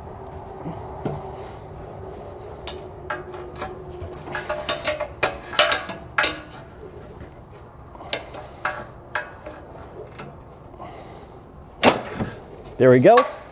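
Metal parts clink and scrape as a hand works them loose.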